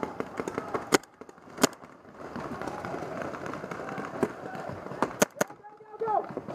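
A paintball marker fires sharp, popping shots close by.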